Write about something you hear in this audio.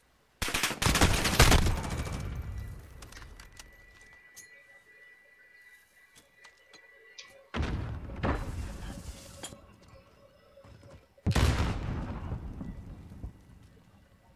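Video game automatic rifle fire rattles in loud bursts.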